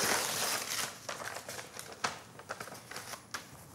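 Paper rustles and crinkles in hands.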